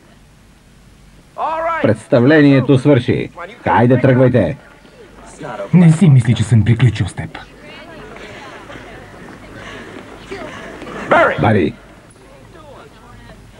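A crowd murmurs quietly in the background.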